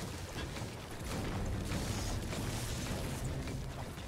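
A pickaxe strikes metal and wood with sharp clangs.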